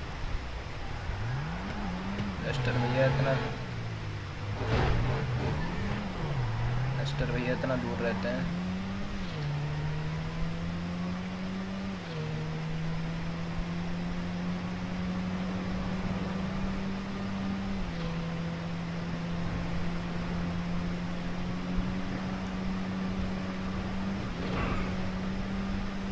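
A small car engine revs up and down, then drones steadily at high speed.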